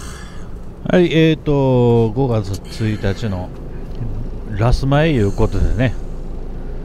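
A man groans and murmurs sleepily close by.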